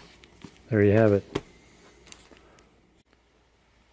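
Plastic wrap crinkles as it is peeled off.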